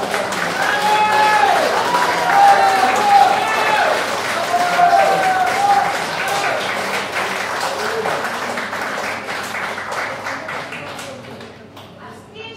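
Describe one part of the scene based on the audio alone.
A live band plays music loudly through loudspeakers.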